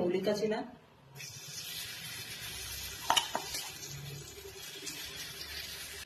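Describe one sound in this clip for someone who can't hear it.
A spoon scrapes against a pan.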